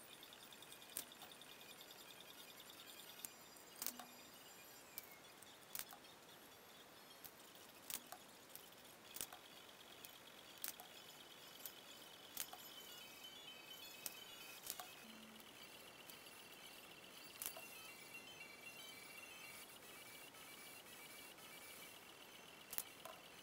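A hand rivet tool snaps sharply, again and again.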